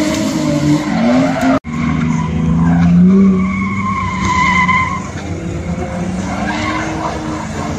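A car engine revs hard and roars in the distance.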